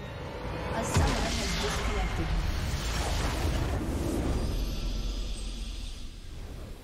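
A game's victory fanfare bursts in with a whoosh and rings on.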